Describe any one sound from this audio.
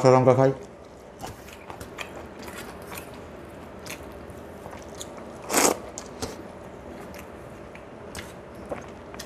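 A man chews food noisily, close to a microphone.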